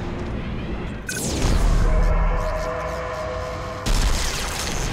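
An electric shield crackles and hums.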